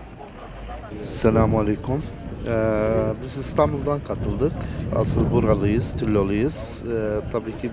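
A middle-aged man speaks with animation into a microphone up close.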